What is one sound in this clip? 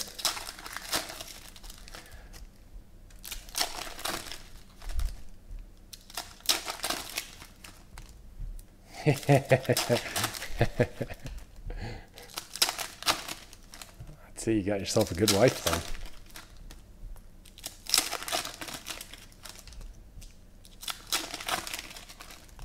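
Plastic wrappers crinkle and rustle as they are torn open.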